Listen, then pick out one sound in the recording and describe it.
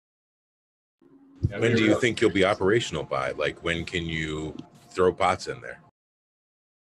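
Another man speaks with animation over an online call.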